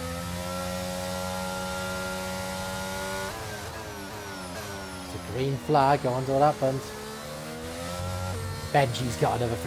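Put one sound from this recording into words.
A racing car engine whines at high revs, shifting pitch as the car brakes and accelerates.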